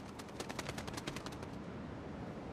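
A bird flaps its wings.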